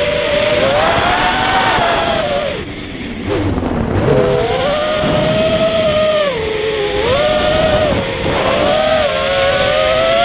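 Small drone motors whine loudly, the pitch rising and dipping as the throttle changes.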